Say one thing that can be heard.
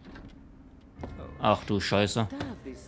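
A heavy door swings open with a creak.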